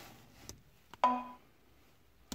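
A computer plays a short chime.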